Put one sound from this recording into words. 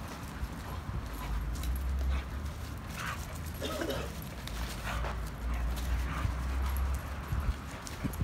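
A chain rattles as dogs tug at it.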